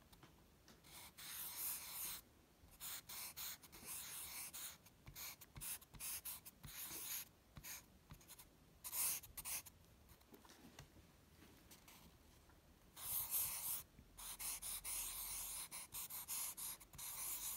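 A felt-tip marker squeaks and scratches across paper in short strokes.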